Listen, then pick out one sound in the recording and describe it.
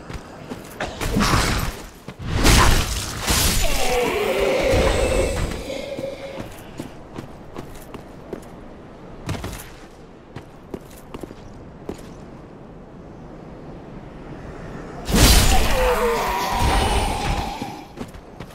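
A sword strikes with heavy metallic blows.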